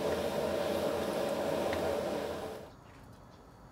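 Broth bubbles and simmers in a pot.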